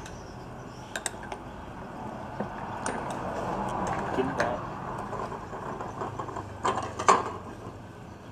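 Porcelain cups and plates clink and knock together.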